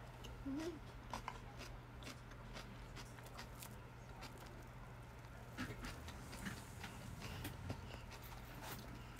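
A young woman chews and smacks her lips close by.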